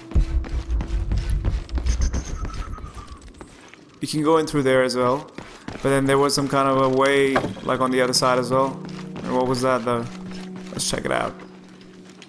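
Footsteps crunch softly on rocky ground.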